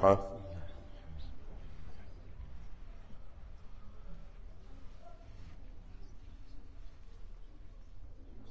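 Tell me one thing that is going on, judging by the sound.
An elderly man reads out quietly into a microphone.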